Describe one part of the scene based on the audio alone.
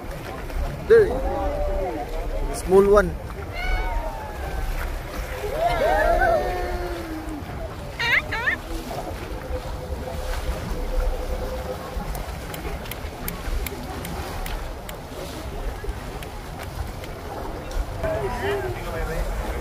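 A crowd of adults on a boat calls out in excitement nearby.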